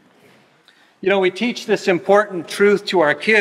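A man speaks calmly through a microphone in a reverberant hall.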